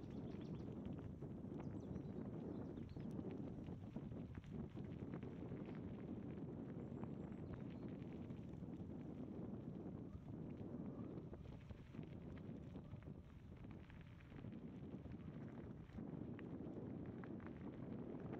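Wind buffets loudly against the rider's helmet.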